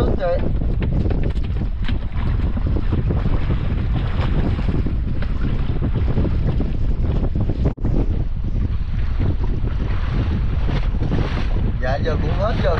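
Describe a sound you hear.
Wind blows loudly outdoors over open water.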